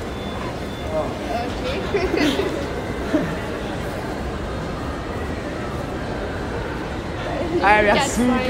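Voices murmur and echo in a large hall.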